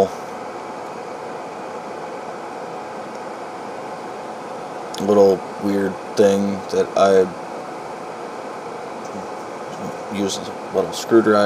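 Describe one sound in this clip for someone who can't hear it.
A pocket knife's tools click as they are opened and closed.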